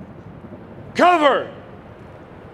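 A man shouts a short command through loudspeakers outdoors.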